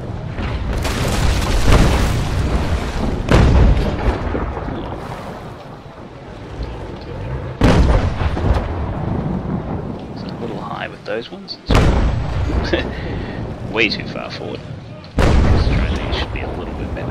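Waves wash and roll on the open sea.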